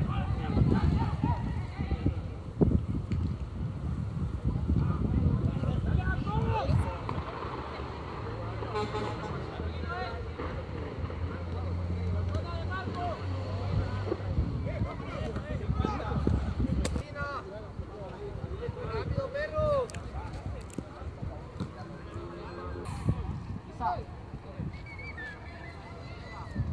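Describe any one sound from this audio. A crowd of spectators cheers and shouts in the distance outdoors.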